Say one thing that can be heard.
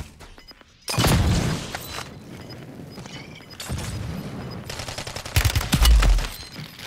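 A loud explosion bursts close by and rumbles.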